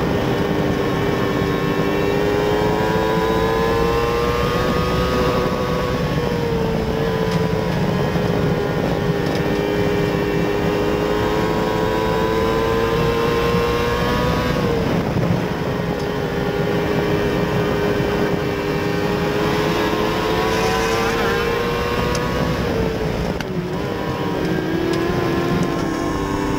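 A race car engine roars loudly up close, its pitch rising and dipping through each lap.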